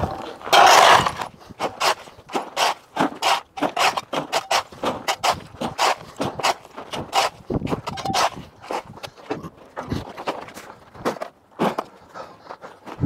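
A shovel scrapes and clinks against broken stone rubble.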